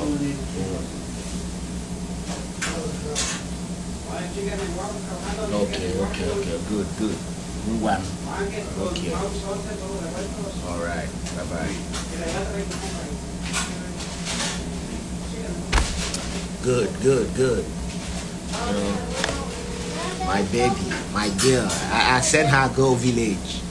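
A man talks casually, close to a phone microphone.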